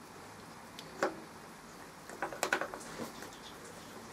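A metal chuck key clicks and clanks as it turns in a chuck.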